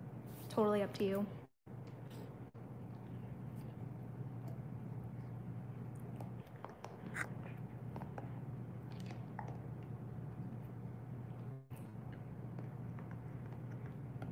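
A dog gnaws and crunches on a chew.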